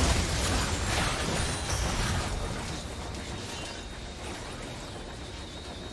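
Game spell effects crackle and burst in a busy fight, then quieten.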